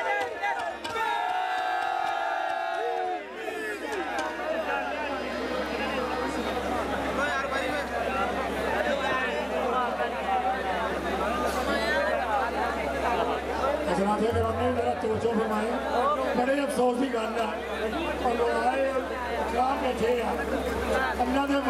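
A large crowd of men chatters loudly all around.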